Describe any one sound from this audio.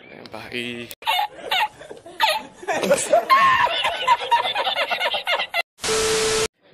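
An older man laughs loudly and heartily.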